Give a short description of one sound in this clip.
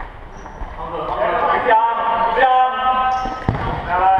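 A ball is kicked hard in an echoing hall.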